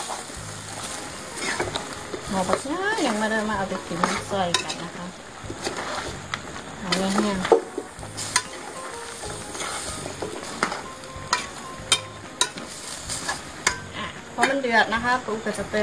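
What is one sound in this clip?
A metal spatula scrapes and clinks against a metal pot.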